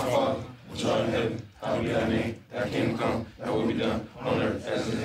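A group of men chant together in phrases with short pauses.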